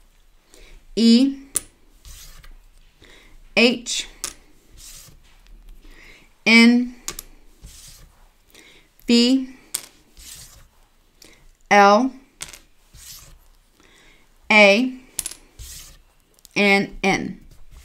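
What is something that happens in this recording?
A woman speaks slowly in short, spaced-out phrases close to a microphone.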